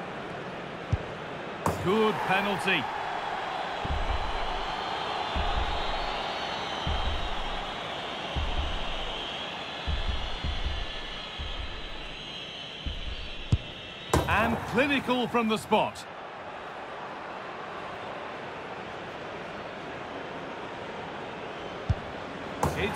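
A football is struck hard with a thump.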